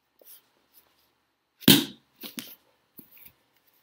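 A book snaps shut close by.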